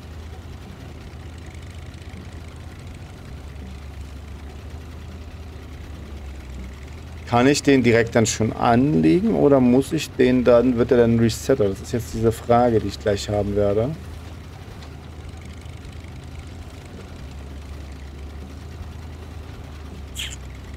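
A truck engine rumbles low and steady as it drives slowly.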